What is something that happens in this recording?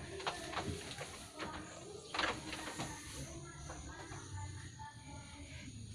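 A feed sack rustles as it is handled.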